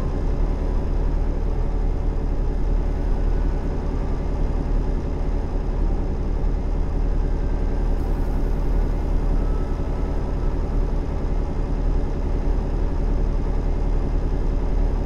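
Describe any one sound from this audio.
A truck engine hums low and steady while driving.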